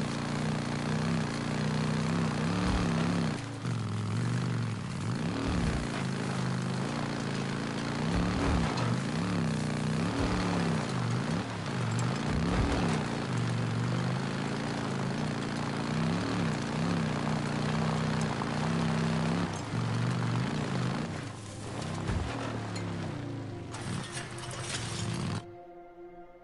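A motorcycle engine rumbles and revs up and down.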